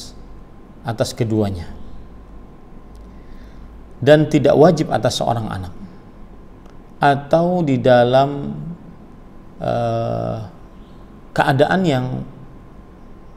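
A man speaks calmly and close, in short phrases with pauses.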